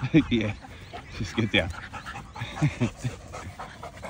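Dogs growl playfully while wrestling.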